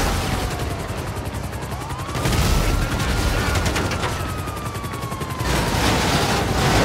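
A tank engine rumbles low and steady as it drives along a road.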